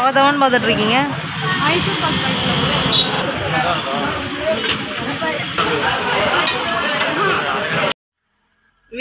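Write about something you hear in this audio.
A crowd chatters in a busy, noisy space.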